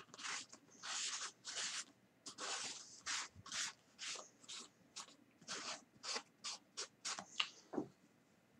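Fingers brush and tap against a stiff foam surface.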